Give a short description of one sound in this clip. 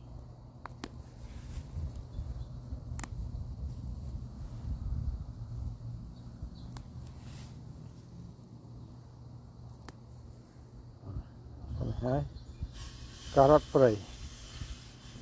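Plants rustle and snap as a hand pulls them from the grass.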